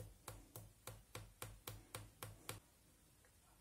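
A small plastic bottle cap clicks rapidly several times.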